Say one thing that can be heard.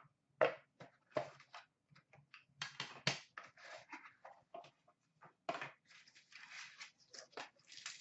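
Cardboard boxes tap and scrape as hands move them.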